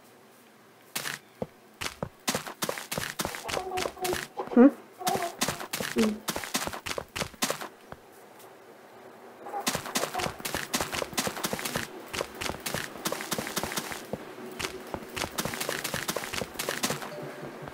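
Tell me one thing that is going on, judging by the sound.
Blocks crumble and crack in quick, repeated knocks.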